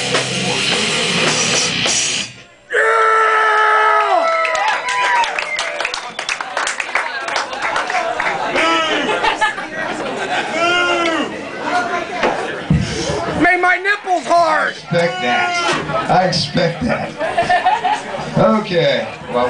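A rock band plays loudly and distorted in a small echoing room.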